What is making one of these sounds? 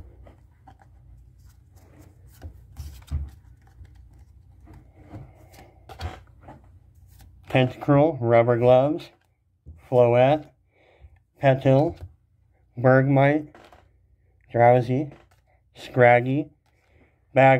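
Trading cards shuffle and flick against each other.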